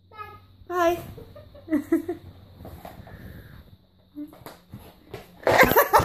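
A young girl talks and squeals playfully close by.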